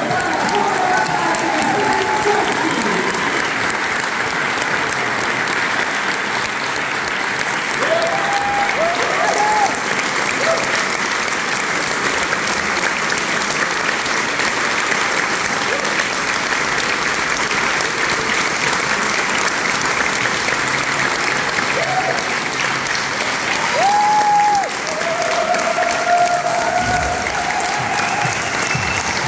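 A large crowd applauds loudly and steadily.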